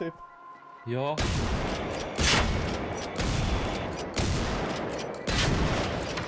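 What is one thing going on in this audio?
Shotgun blasts boom loudly, one roughly every second.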